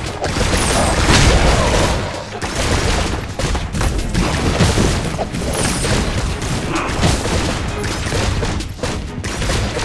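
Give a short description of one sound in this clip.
Sword slashes whoosh and clang in quick succession.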